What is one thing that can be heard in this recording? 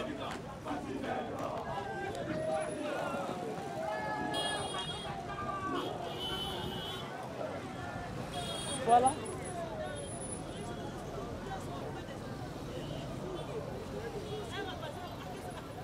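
Motorcycle engines rumble nearby.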